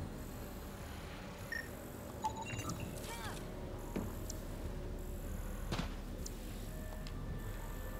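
An electronic scanner hums with soft beeps and chirps.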